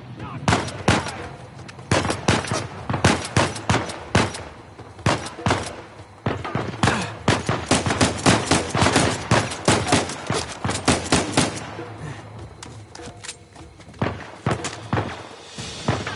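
Pistol shots crack in rapid bursts, echoing off walls.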